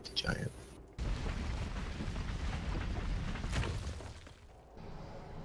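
Magic spells whoosh and rumble in a battle.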